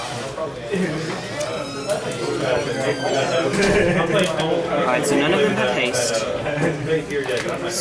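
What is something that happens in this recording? Playing cards slide and tap on a table mat.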